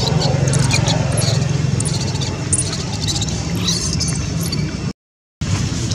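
A baby monkey squeaks softly close by.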